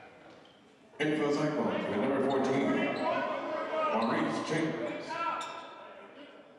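Players and spectators shout and call out in an echoing gym.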